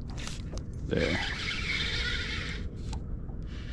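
A fishing reel whirs as its handle is turned.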